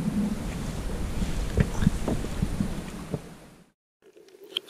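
Water laps and splashes against a kayak.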